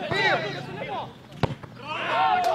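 A football is struck with a sharp thump.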